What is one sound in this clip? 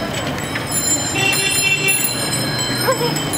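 Bicycle bells ring several times.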